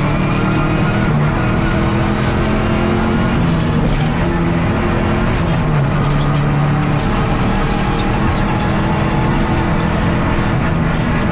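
Loose stones and gravel clatter against the underside of the car.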